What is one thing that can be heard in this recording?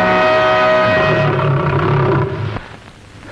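A lion roars loudly and fiercely.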